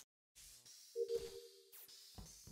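A short electronic beep sounds.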